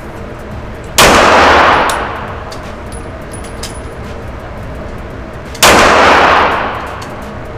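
A pistol fires single loud shots that ring out with a sharp echo.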